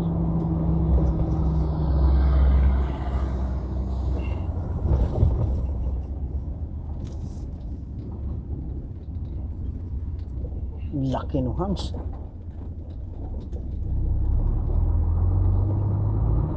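Tyres roll along a paved road.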